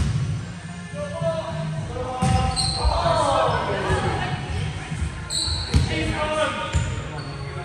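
Young men call out and shout to each other in an echoing hall.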